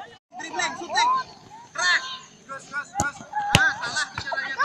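A football thuds as a child kicks it.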